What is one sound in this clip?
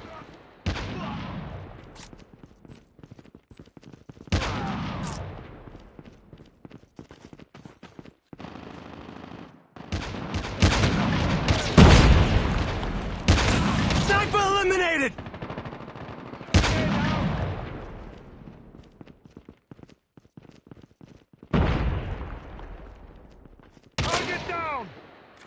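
A sniper rifle fires loud single shots that echo and fade.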